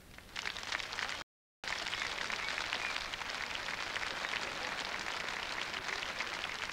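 A large crowd applauds and cheers loudly in a big echoing arena.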